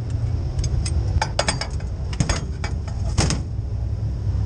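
A quick-release steering wheel unlatches with metallic clicks.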